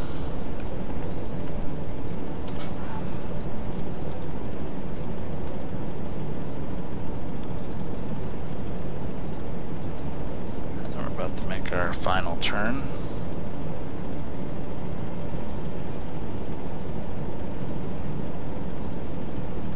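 A submarine's engines rumble low and steady.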